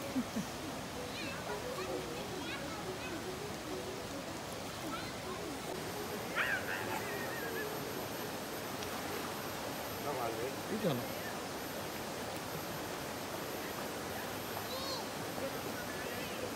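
A swimmer splashes through the water.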